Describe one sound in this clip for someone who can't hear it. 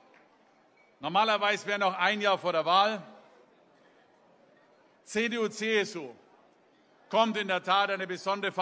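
A man speaks forcefully into a microphone over loudspeakers, heard in a large hall.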